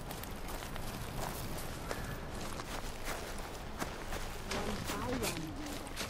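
Footsteps tread softly on earth.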